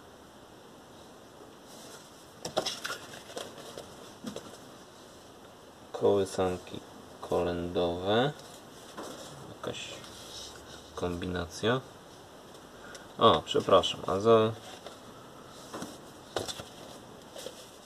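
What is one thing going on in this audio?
Cardboard record sleeves slide and rustle as they are flipped through.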